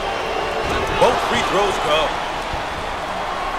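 A crowd cheers loudly in a short burst.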